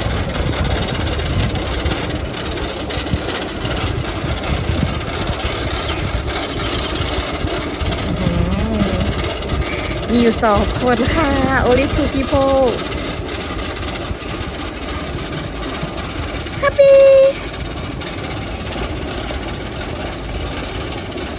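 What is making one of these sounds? A roller coaster train clatters slowly up a wooden lift hill in the distance.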